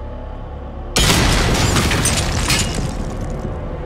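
A large energy orb bursts with a loud crackling blast.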